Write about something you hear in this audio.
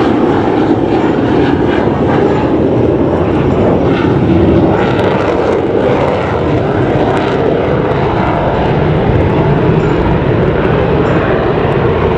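A jet engine roars steadily overhead.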